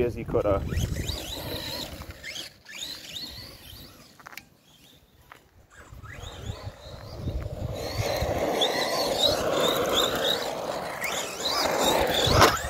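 A toy car's electric motor whirs and whines as the car races about.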